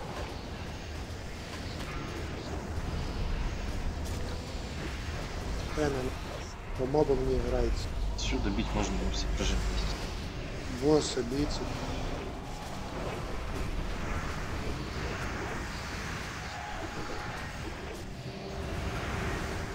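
Magic spells crackle and whoosh in a fierce battle.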